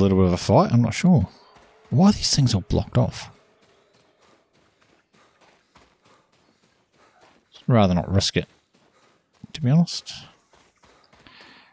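Footsteps tread through grass and over a road.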